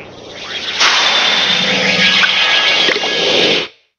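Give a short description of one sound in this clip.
A magical sparkle shimmers and whooshes.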